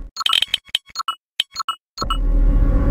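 Short electronic menu beeps chime.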